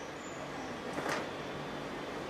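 A fan snaps open with a sharp flick.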